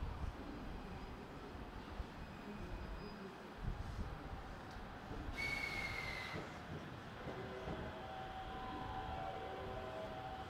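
A train rumbles as it approaches along the tracks.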